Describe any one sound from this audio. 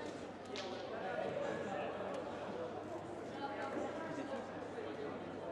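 A small crowd murmurs and chatters in a large echoing hall.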